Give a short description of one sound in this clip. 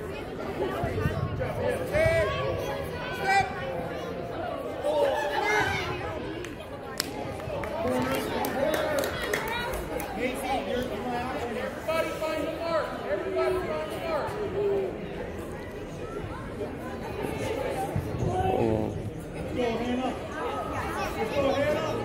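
Young female players call out to each other.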